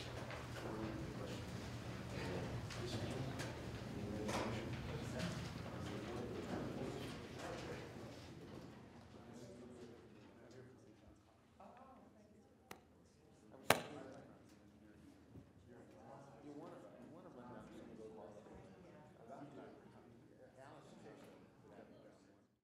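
A crowd of men and women chatter at once in a large echoing hall.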